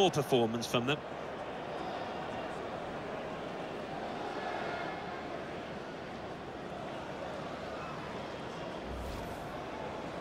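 A large stadium crowd cheers and roars steadily.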